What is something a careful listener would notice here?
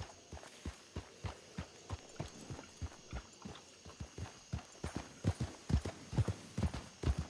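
Horse hooves thud steadily on packed snowy ground.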